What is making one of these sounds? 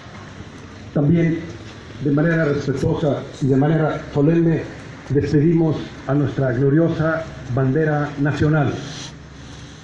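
A man speaks firmly into a microphone, heard over a loudspeaker outdoors.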